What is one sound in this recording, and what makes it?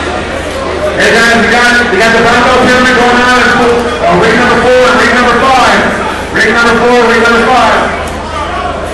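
A man shouts loudly and urgently nearby.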